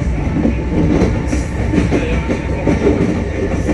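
A passing train roars by close alongside.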